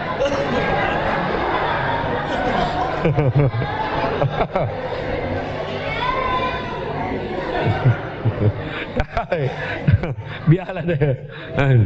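A man laughs through a microphone.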